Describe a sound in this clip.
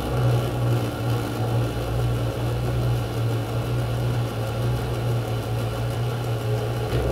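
Electronic music plays loudly through speakers with a deep, droning bass.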